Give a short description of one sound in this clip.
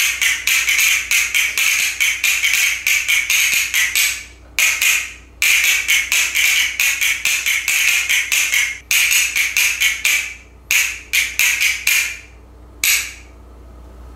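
A small plastic toy clicks rapidly in a man's hands.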